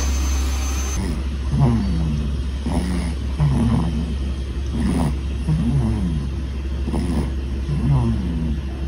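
A baby snores softly and steadily.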